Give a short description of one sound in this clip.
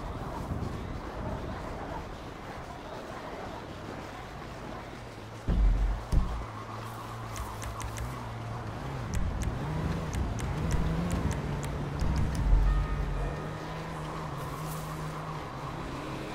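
Footsteps crunch through snow at a run.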